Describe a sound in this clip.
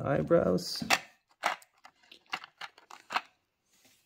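A plastic tray clicks and crinkles under fingers.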